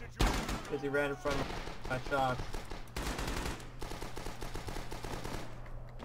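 Rifle shots crack nearby.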